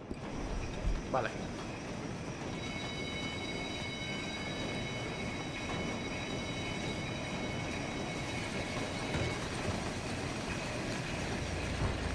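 Footsteps thud on wooden stairs and boards.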